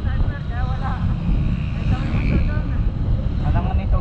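A motorbike passes close by.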